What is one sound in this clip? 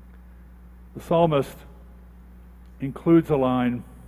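A man speaks calmly through a microphone, with short pauses.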